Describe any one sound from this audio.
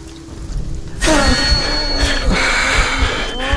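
A young man shouts excitedly close to a microphone.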